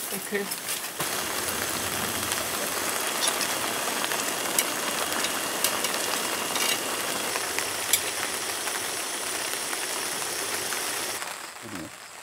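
Broth bubbles and sizzles steadily in a pan.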